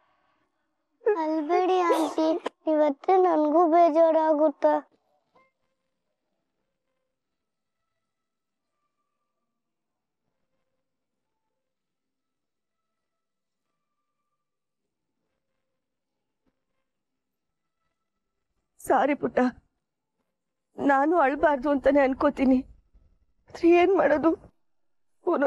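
A woman speaks emotionally, close by.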